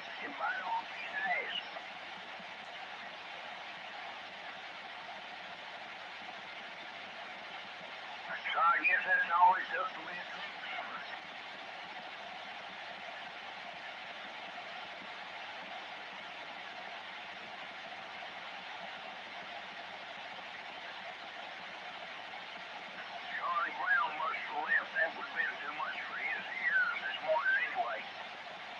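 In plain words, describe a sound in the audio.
A radio hisses with steady static.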